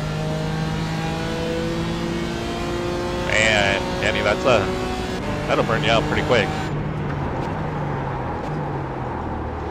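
A racing car engine roars and changes pitch as it shifts gears.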